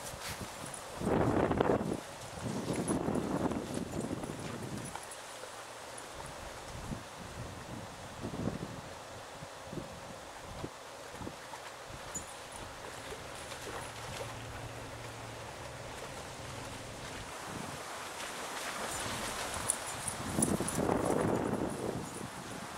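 Dogs splash through shallow water.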